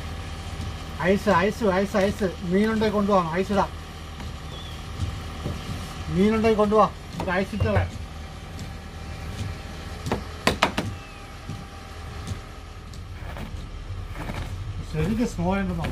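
A middle-aged man talks.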